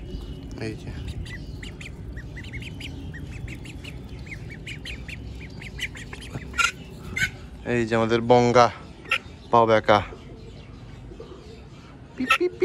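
Ducklings peep in high, thin chirps close by.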